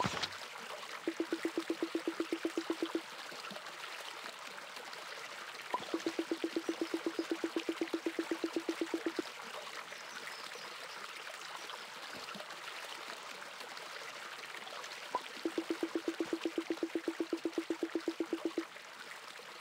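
Quick blips tick rapidly as dialogue text types out.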